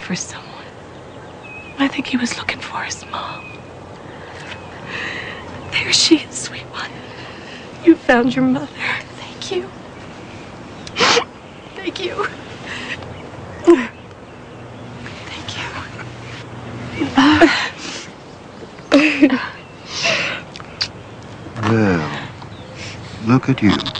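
A woman speaks softly and emotionally, close by.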